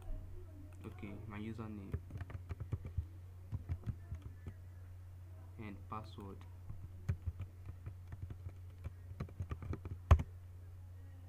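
Keyboard keys click quickly as someone types.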